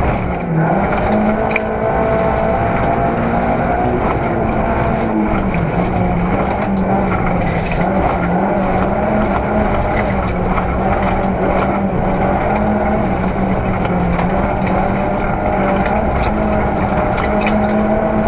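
A man reads out pace notes rapidly through an intercom.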